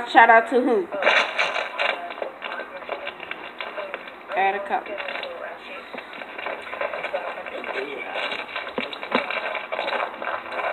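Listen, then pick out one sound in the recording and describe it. A boy talks with animation close to a phone microphone.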